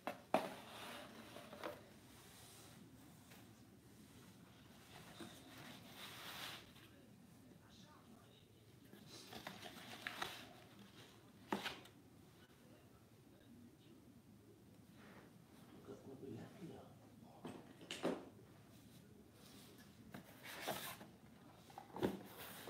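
Cardboard puzzle pieces knock and scrape as they are handled.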